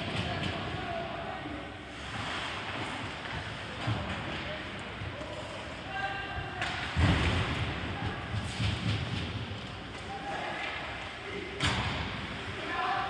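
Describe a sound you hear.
Skates scrape and carve across the ice in a large echoing rink.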